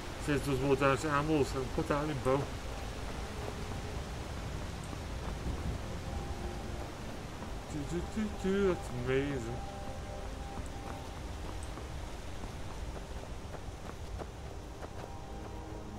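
Footsteps crunch steadily on dirt and stone.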